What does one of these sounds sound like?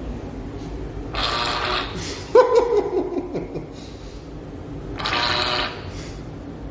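A soap dispenser whirs as it pumps out foam.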